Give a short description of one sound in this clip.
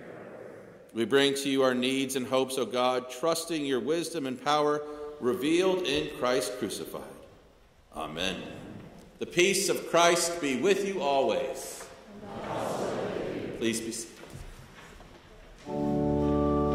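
A middle-aged man chants through a microphone in an echoing hall.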